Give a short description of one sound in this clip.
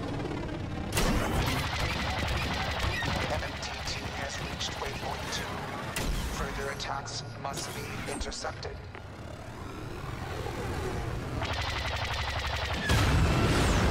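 A starfighter's blaster cannons fire rapid shots.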